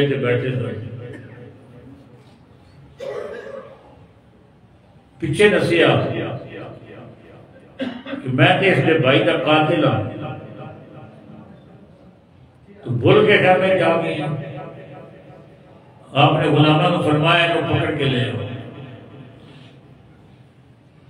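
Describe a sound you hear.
An elderly man speaks with feeling into a close microphone, in bursts with pauses, echoing through a loudspeaker.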